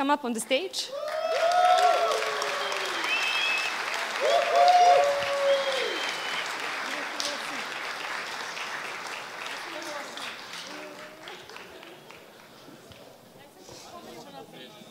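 An audience cheers and applauds.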